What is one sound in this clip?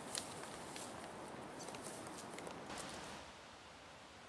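Footsteps crunch through dry undergrowth close by.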